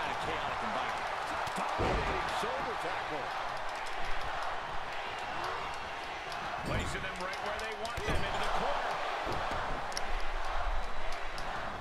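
A crowd cheers steadily.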